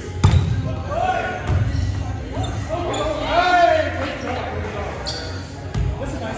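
A volleyball smacks sharply off a player's hands in an echoing gym.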